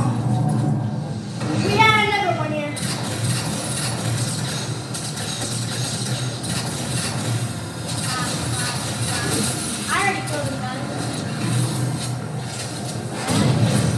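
Gunfire and energy blasts from a video game play through a television speaker.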